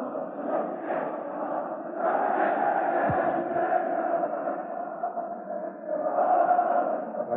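A large stadium crowd roars and chants steadily, swelling now and then.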